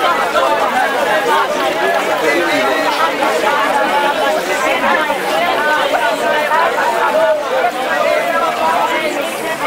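A crowd of men and women pray aloud at once, their voices overlapping.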